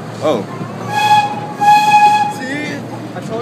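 A train whistle sounds in two short blasts.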